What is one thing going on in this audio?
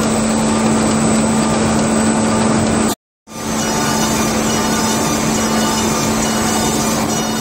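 A perfect binding machine runs with a steady mechanical hum and clatter.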